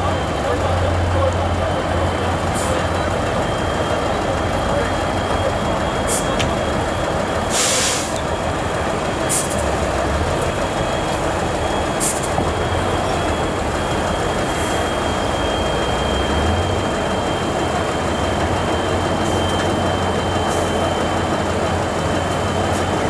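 A truck engine roars and labours loudly as it climbs a steep dirt slope.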